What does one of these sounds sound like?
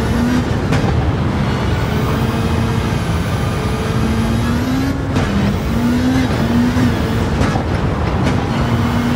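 A racing car engine drones and changes pitch as the car speeds along.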